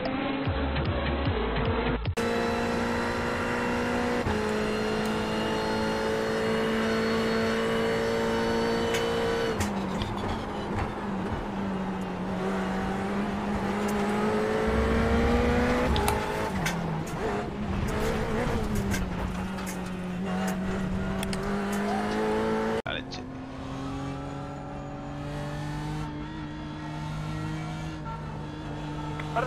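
A racing car engine roars loudly, its pitch rising and dropping with gear changes.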